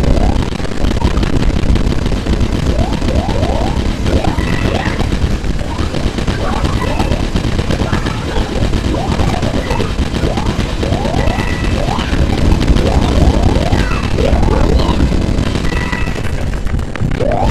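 Video game jump sound effects chirp upward in quick bursts.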